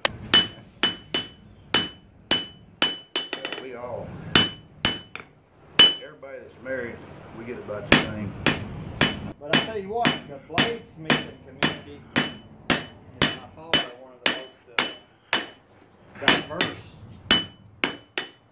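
A hammer strikes hot metal on an anvil in a steady rhythm, each blow ringing sharply.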